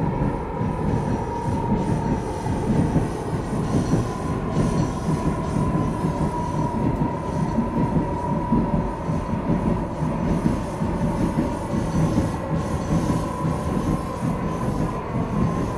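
A subway train rumbles steadily along the tracks, with a faint steady whine.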